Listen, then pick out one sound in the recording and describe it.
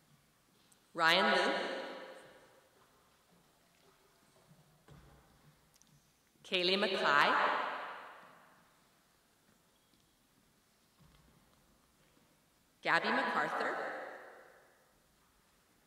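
A woman announces names through a microphone, echoing in a large hall.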